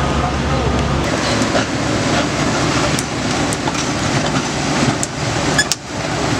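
An excavator engine runs loudly close by.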